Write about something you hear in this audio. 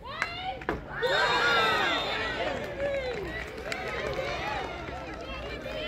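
A crowd of young women cheers loudly after a goal.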